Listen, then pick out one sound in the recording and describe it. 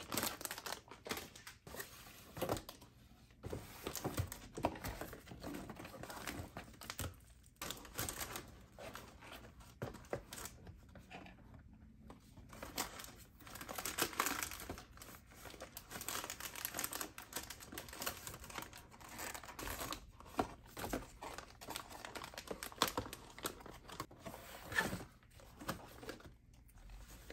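Plastic food packets rustle and crinkle as they are handled.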